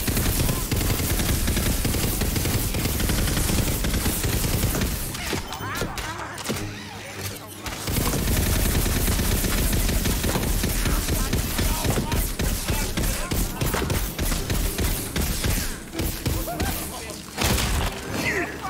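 Guns fire rapidly in loud bursts.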